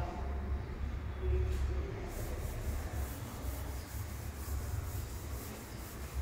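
A cloth rubs and wipes across a chalkboard.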